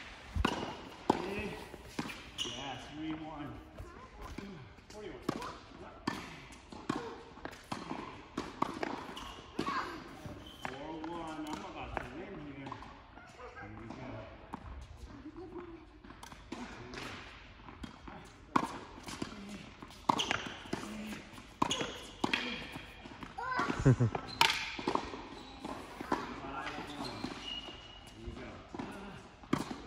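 Tennis balls are struck with rackets, echoing in a large indoor hall.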